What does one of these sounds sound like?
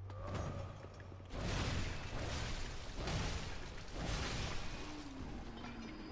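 A weapon swings and strikes in a fight.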